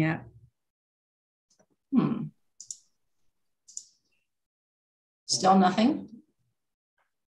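A middle-aged woman speaks calmly in short phrases over an online call.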